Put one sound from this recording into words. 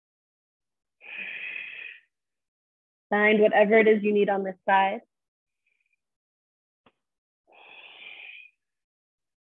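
A woman breathes out audibly.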